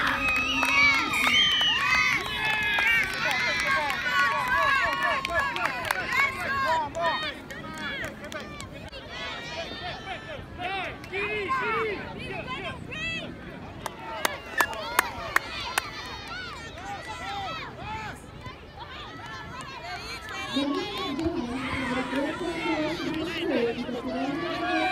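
A crowd of young girls shout and cheer outdoors.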